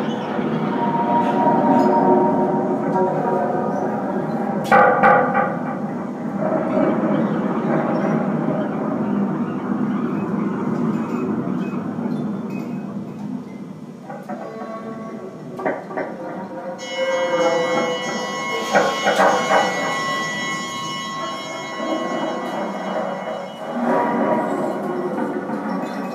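Electronic music plays with droning, shifting tones and bursts of noise.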